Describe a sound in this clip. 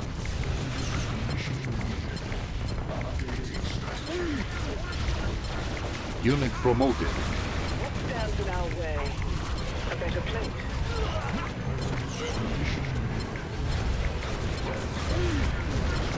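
Gunfire rattles steadily in a battle.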